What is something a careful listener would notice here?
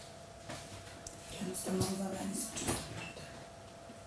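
A woman talks quietly, close by.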